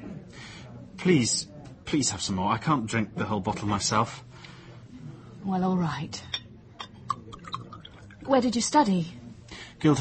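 An elderly woman speaks calmly, close to a microphone.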